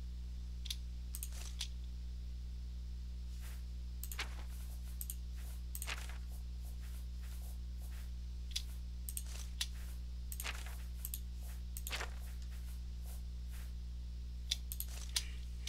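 Short soft clicks tick again and again at an uneven pace.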